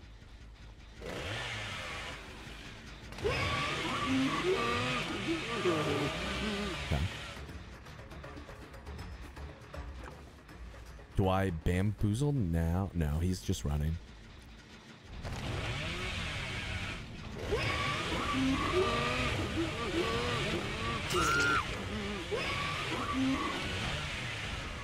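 A chainsaw revs loudly and roars.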